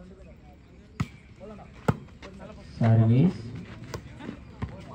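A volleyball is struck with a hand.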